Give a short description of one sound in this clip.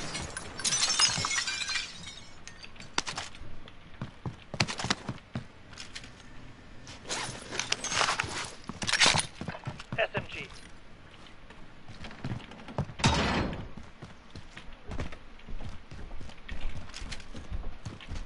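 A rifle fires in rapid bursts of sharp gunshots.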